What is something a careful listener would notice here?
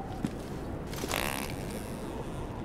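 A hard blow strikes with a loud whoosh and thump.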